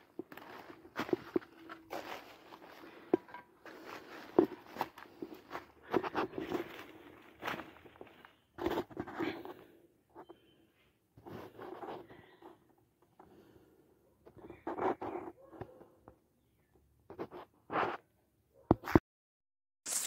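Footsteps crunch and rustle through dry leaves and twigs.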